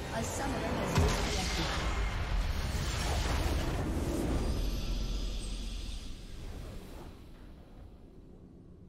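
A triumphant game fanfare swells and then fades.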